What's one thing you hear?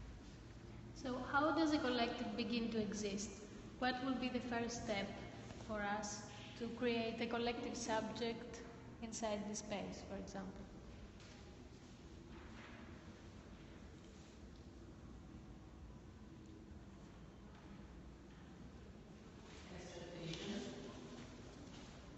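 A woman speaks nearby in a room with a slight echo.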